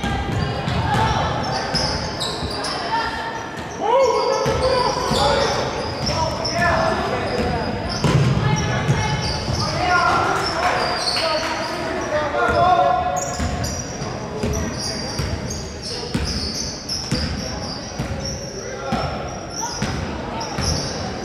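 Spectators talk and call out in a large echoing gym.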